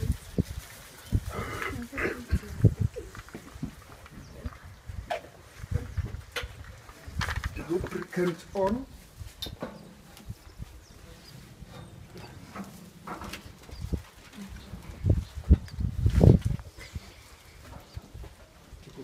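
Metal gate rails clank and rattle.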